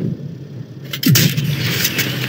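A tank cannon fires with a sharp boom in a video game.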